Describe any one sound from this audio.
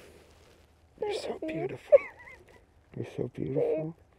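A young man speaks softly and tenderly close by.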